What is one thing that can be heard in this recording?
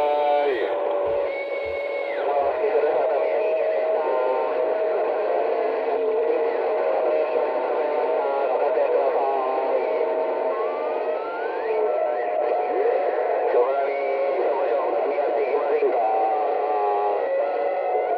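A radio receiver warbles and crackles with distorted, garbled signals through a small loudspeaker.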